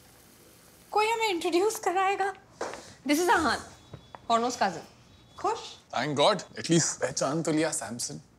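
A young woman speaks with animation, raising her voice.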